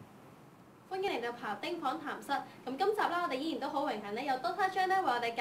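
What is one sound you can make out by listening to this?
A young woman speaks clearly into a microphone close by.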